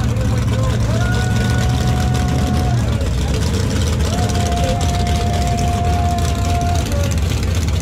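A car engine revs up in short bursts.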